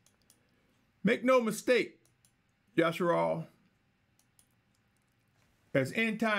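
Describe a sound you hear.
A middle-aged man speaks calmly and closely into a microphone, in short phrases with pauses.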